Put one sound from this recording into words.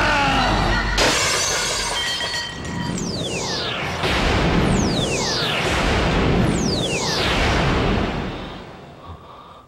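Debris crashes and clatters down.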